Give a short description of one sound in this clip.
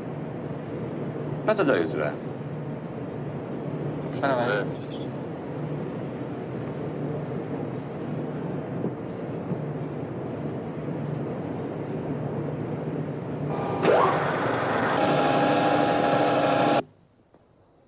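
Machinery hums steadily in a large workshop.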